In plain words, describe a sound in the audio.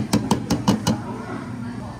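Milk pours from a glass jug into a glass.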